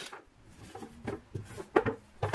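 A wooden board knocks against a plastic tray.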